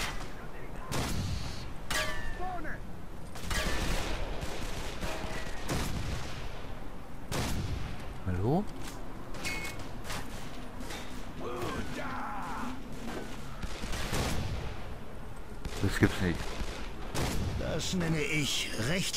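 A sniper rifle fires sharp, loud shots at intervals.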